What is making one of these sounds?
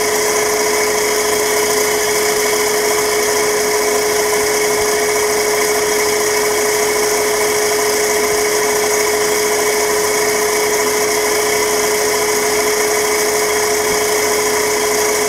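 A motor hums loudly and steadily with a high whine.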